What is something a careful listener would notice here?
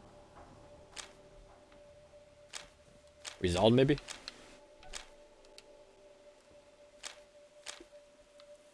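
Short interface clicks sound as menu items are selected.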